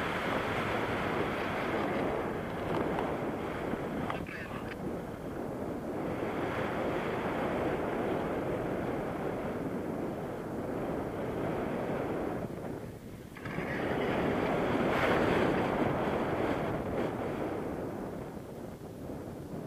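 Strong wind roars past a microphone outdoors.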